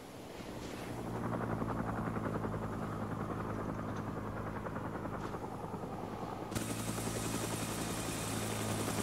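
A helicopter's rotors thud steadily overhead.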